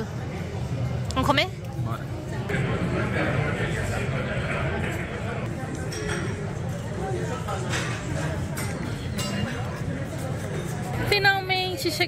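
People chatter quietly in the background.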